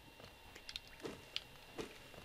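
A blade swishes quickly through the air.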